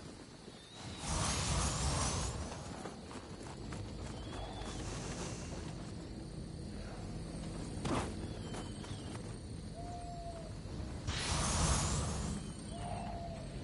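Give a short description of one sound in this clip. A shimmering magical whoosh swells and fades.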